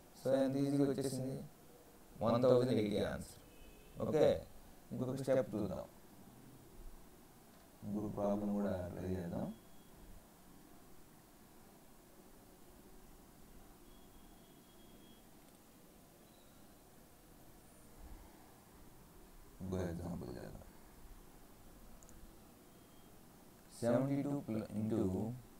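A man speaks calmly in short bursts with pauses, heard through a microphone.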